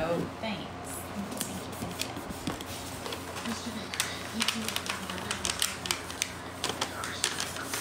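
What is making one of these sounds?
Fabric rustles and clothing brushes close by.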